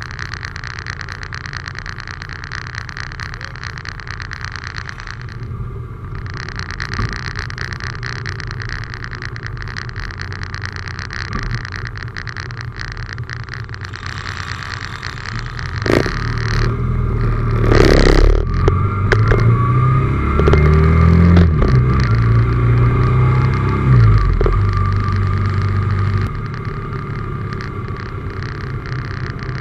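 A motorcycle engine drones steadily up close, rising and falling as it changes speed.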